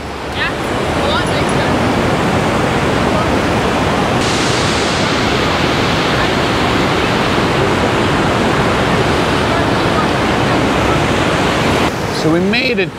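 Whitewater roars as a river rushes through a rocky gorge.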